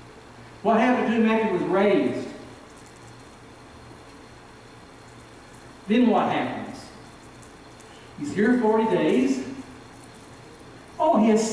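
A middle-aged man preaches forcefully into a microphone in short bursts, with long pauses.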